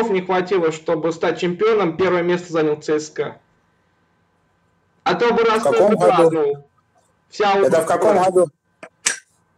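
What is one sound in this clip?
A man talks with animation through an online call.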